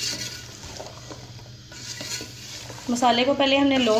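A spoon stirs and scrapes vegetables in a metal pot.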